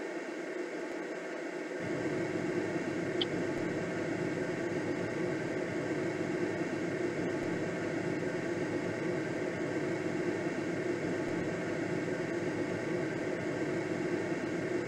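Wind rushes steadily past a gliding aircraft.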